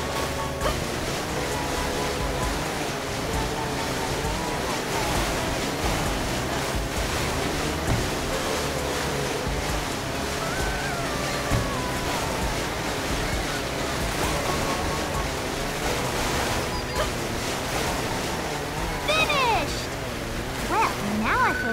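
A jet ski engine whines steadily.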